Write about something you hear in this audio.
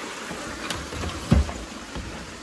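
A door handle clicks as a door is opened.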